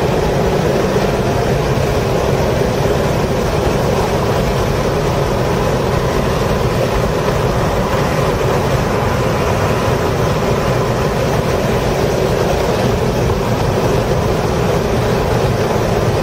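A race car engine roars loudly from inside the cabin at high speed.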